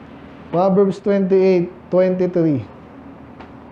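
A man speaks loudly and emphatically through a microphone in an echoing room.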